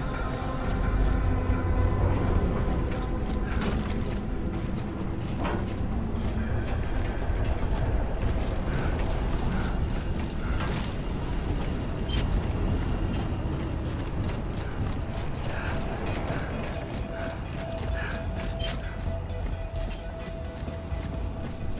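Heavy boots thud on the ground as a soldier runs.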